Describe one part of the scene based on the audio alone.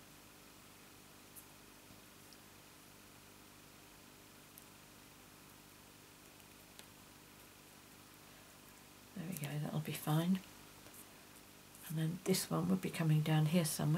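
Tweezers tap lightly on paper.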